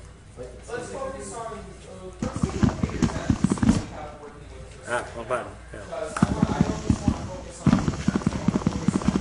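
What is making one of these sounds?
A teenage boy talks with animation into a nearby microphone.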